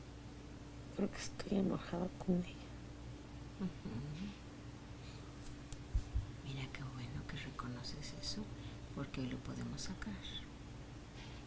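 A woman groans softly nearby.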